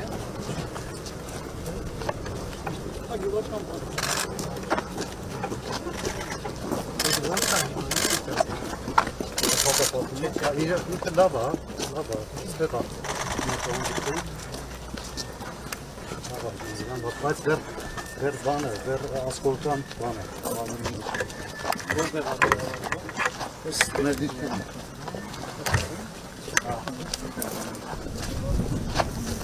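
Footsteps scuff on a paved road as a group walks outdoors.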